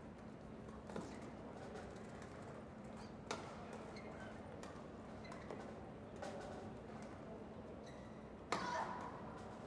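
Rackets strike a shuttlecock back and forth in a large echoing hall.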